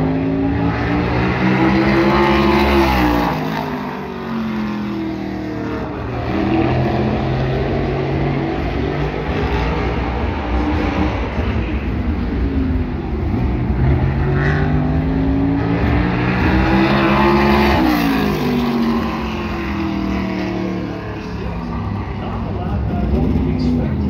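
Race car engines roar and rev loudly, rising and falling in pitch as cars pass.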